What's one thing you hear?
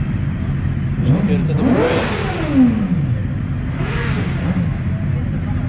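A motorcycle engine revs up sharply and falls back.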